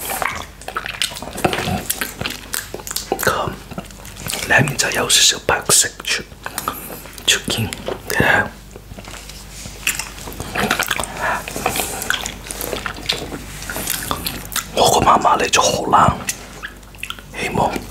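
A young man licks and slurps on a hard candy.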